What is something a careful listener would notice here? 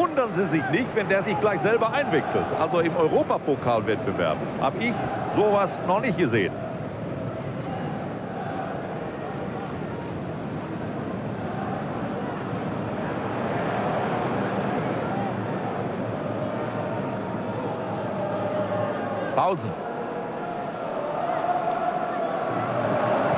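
A large crowd cheers and chants steadily across a stadium outdoors.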